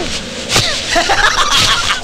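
A young woman sobs and cries out.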